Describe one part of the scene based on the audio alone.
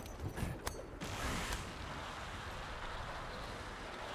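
A line whirs and whooshes during a fast glide.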